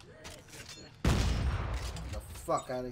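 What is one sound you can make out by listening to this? A gun fires a single loud shot that echoes and fades.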